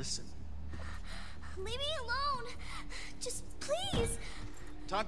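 A young girl pleads in a frightened voice.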